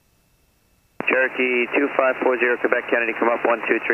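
A man speaks calmly over a headset intercom.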